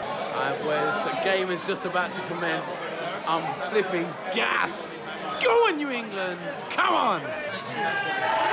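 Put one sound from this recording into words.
A young man talks excitedly, close up.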